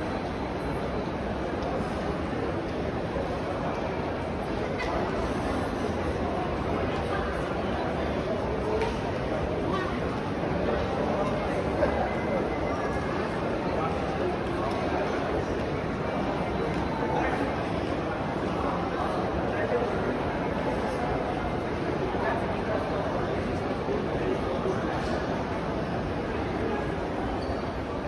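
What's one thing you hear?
A crowd murmurs indistinctly in a large echoing hall.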